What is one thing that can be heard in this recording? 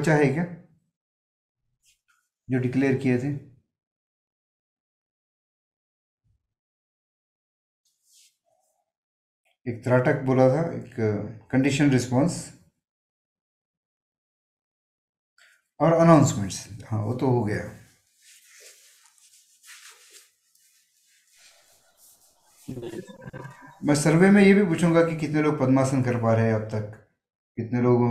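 An older man speaks calmly and slowly through a microphone, with long pauses.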